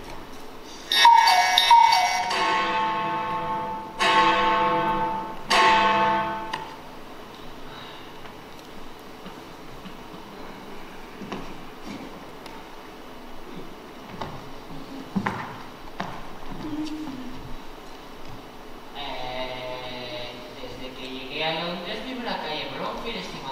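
A young woman sings through a microphone in a large echoing hall.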